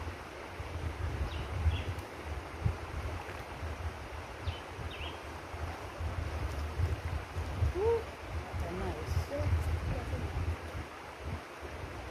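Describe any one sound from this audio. Water splashes softly as a child swims.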